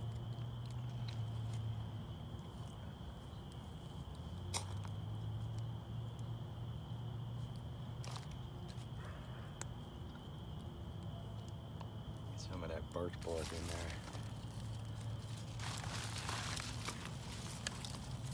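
A small fire crackles and hisses, growing louder.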